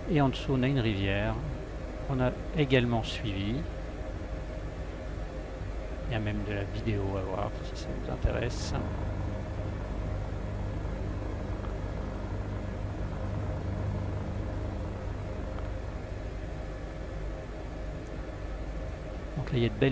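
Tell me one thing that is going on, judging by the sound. A helicopter engine drones steadily with a low, throbbing hum.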